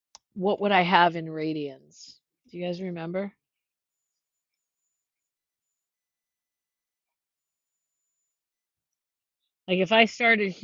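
A woman explains calmly into a close microphone, pausing between phrases.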